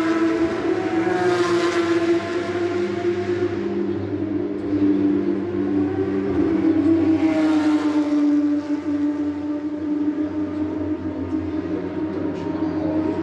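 Racing car engines roar loudly as cars speed past, heard outdoors from a distance.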